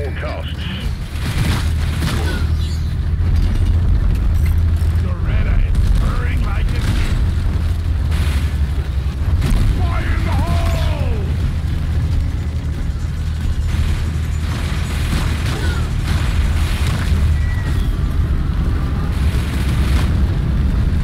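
A heavy gun fires in rapid, roaring bursts.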